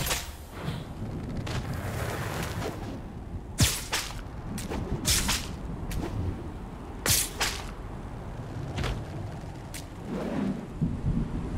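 A rope whooshes as a grappling line swings through the air.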